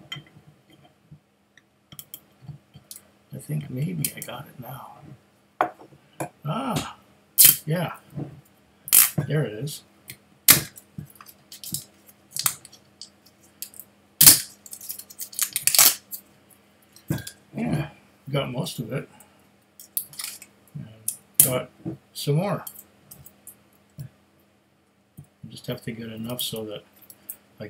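Small objects click and tap in a man's hands.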